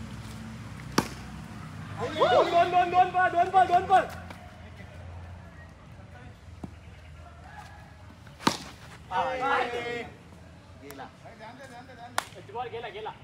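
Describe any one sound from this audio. A bat knocks a ball with a sharp crack.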